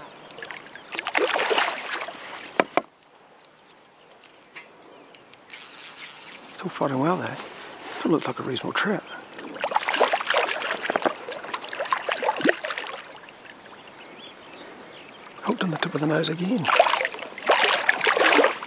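A fish splashes and thrashes at the surface of the water.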